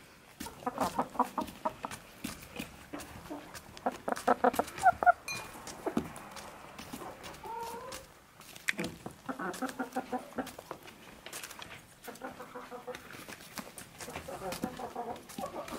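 Chickens cluck and chatter close by.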